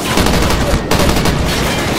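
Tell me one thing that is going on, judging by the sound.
Gunfire rattles rapidly close by.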